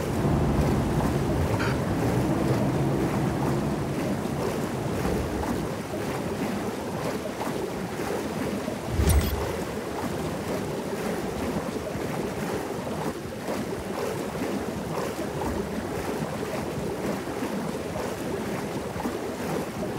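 Water sloshes and swirls as a swimmer strokes along.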